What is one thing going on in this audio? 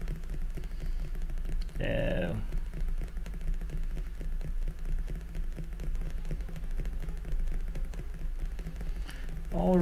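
A mouse clicks rapidly and steadily.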